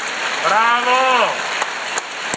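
A man in the audience shouts out loudly.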